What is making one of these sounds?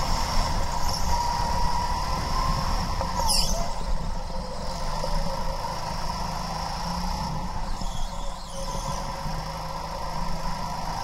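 A go-kart engine buzzes loudly and steadily close by.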